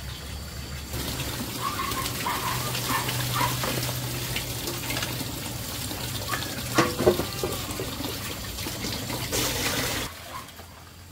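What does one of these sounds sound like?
Water pours and splashes through a basket.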